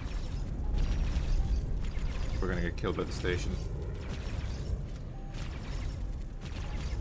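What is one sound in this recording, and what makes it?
Laser guns fire in quick bursts.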